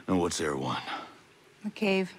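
A man asks a question in a low, calm voice.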